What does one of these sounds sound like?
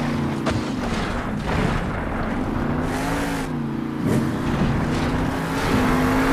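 A monster truck engine roars and revs loudly.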